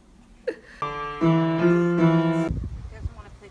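Piano keys are struck in a quick melody.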